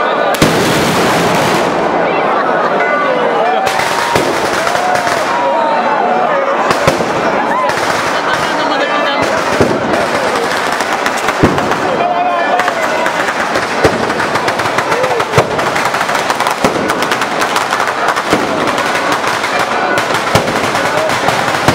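Firecrackers crackle in rapid bursts of a ground fireworks display.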